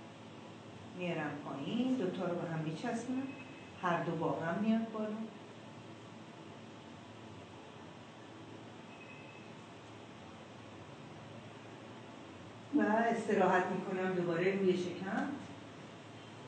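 A woman speaks calmly and clearly, close by.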